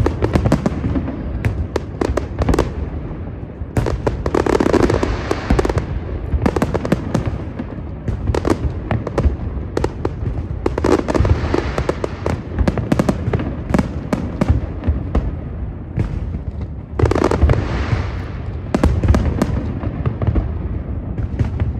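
Fireworks boom with deep rumbling thuds far off.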